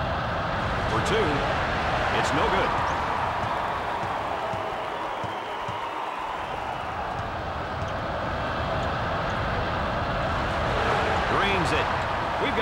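Sneakers squeak sharply on a hard court now and then.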